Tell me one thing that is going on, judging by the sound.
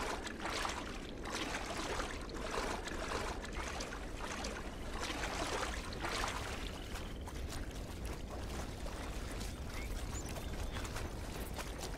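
A person wades through deep water with splashes.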